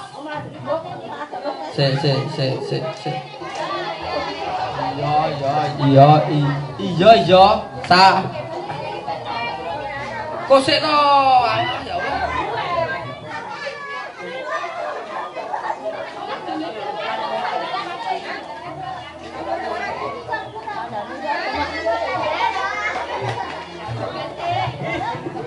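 A group of women chatter and call out nearby.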